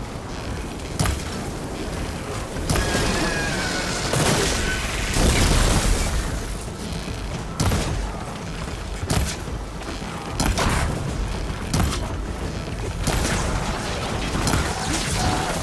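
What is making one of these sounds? A bow twangs as arrows are loosed again and again.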